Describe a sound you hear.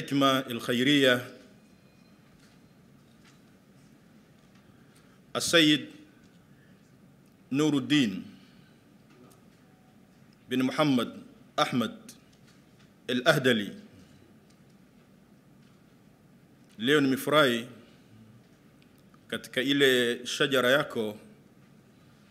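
A man speaks slowly and solemnly into a microphone over loudspeakers, with long pauses.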